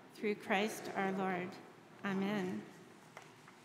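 A middle-aged woman reads aloud calmly into a microphone.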